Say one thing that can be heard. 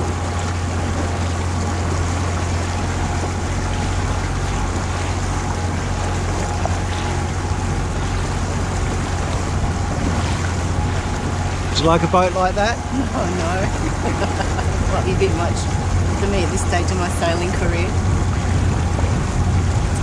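Water laps gently against a boat's hull.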